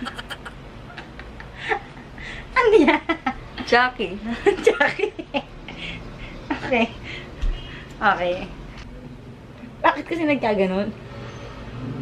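A young girl talks excitedly and laughs close by.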